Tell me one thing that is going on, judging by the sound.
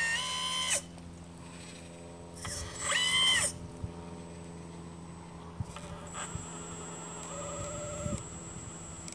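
Small servo motors whine in short bursts.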